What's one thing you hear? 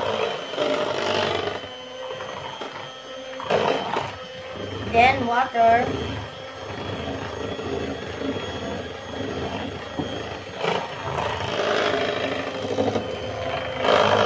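An electric hand mixer whirs steadily as its beaters whip batter.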